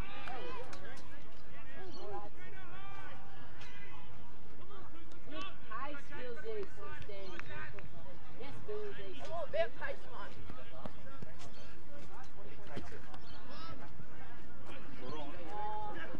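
Men shout and call out to each other outdoors across an open field.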